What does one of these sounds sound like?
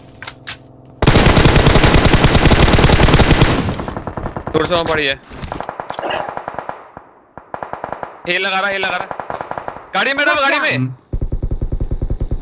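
Rapid automatic gunfire rattles in loud bursts.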